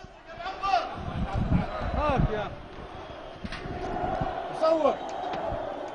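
Men shout close by.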